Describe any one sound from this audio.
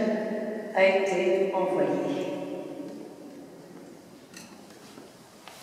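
A censer's chains clink softly as it swings in a large echoing hall.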